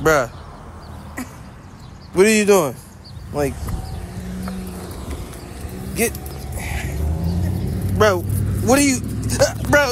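A chain leash rattles on pavement.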